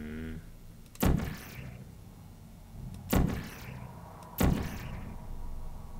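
A gun fires with a sharp electric zap.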